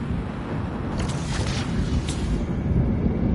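An energy blast bursts loudly.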